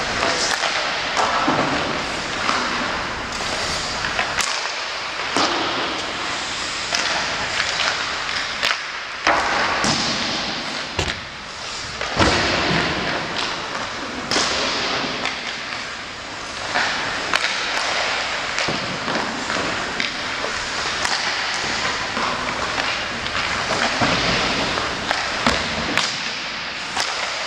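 Hockey sticks strike pucks with sharp clacks.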